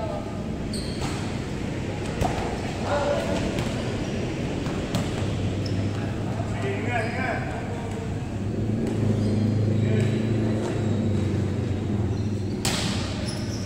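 A volleyball is struck by hand in an echoing hall.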